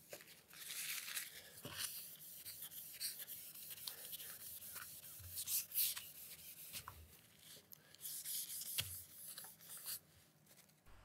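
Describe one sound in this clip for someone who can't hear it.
A cloth rubs and wipes across a metal sheet.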